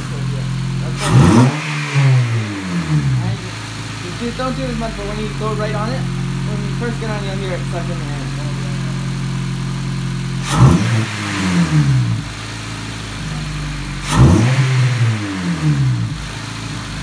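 A four-cylinder car engine revs sharply with a loud intake roar, then drops back to idle.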